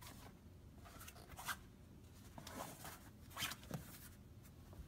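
A hard plastic tray knocks and clatters as it is handled.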